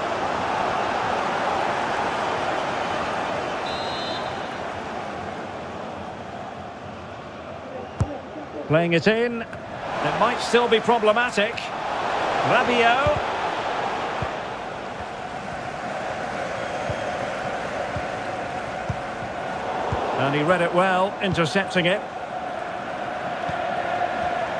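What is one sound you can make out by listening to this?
A large stadium crowd murmurs and roars.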